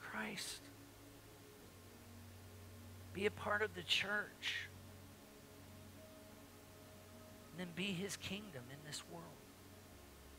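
An older man speaks calmly into a microphone in a large room, with short pauses between phrases.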